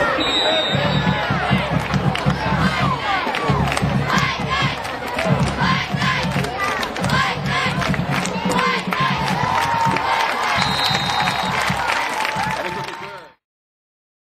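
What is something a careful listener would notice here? A crowd cheers and shouts in the stands outdoors.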